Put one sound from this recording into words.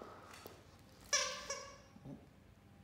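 A rubber toy squeaks as a dog chews it.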